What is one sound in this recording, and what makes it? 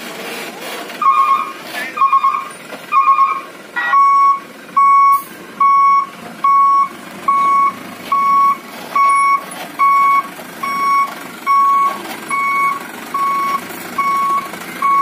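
A truck's reversing alarm beeps over and over at an even pace.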